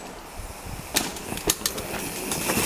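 A bicycle lands with a thud after a jump.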